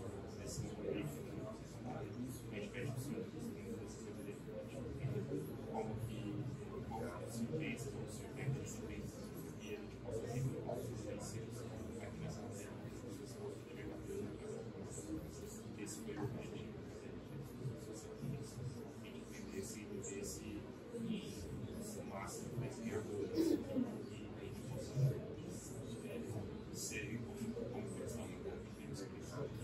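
A middle-aged man speaks calmly into a microphone in an echoing room.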